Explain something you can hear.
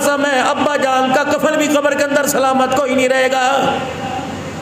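A man preaches with fervour into a microphone, in an echoing room.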